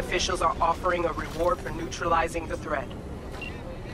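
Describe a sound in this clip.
A man speaks calmly over a call.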